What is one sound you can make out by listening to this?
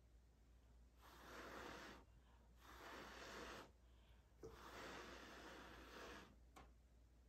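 A woman blows air in long breaths, close by.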